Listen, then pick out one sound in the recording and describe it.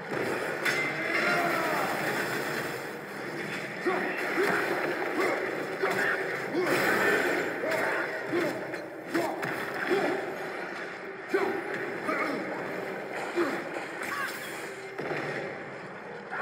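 A beast snarls and growls.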